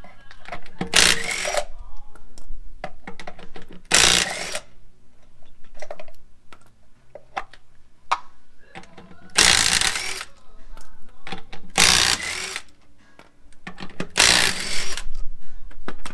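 A power wrench buzzes in short bursts.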